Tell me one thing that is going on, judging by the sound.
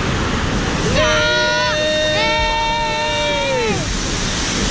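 A young boy shouts excitedly.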